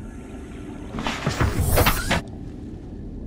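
A vehicle hatch opens with a loud whooshing rush.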